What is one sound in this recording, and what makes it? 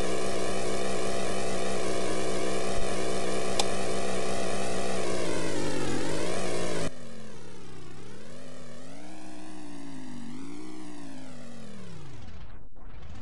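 An engine hums steadily, rising and falling in pitch as it speeds up and slows.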